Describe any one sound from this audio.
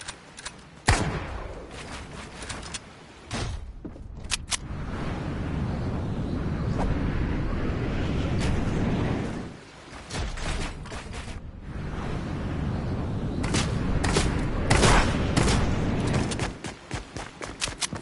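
Game building pieces clatter and thud as they are placed in quick bursts.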